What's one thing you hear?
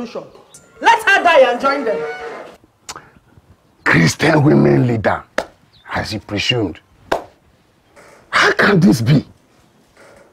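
An older man speaks close by with an animated, drawn-out voice.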